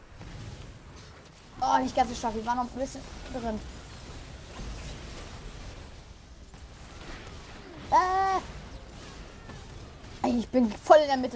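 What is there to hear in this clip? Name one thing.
Magical blasts and clashes sound during a fast battle.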